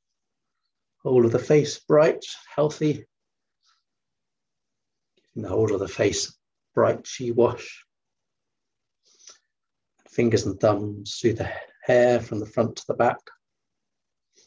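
A man speaks calmly in short phrases through an online call.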